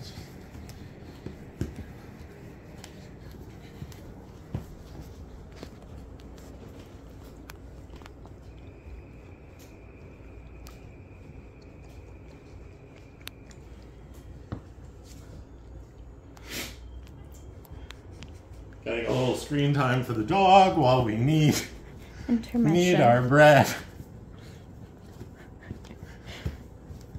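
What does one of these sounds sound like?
Dough thumps softly on a counter.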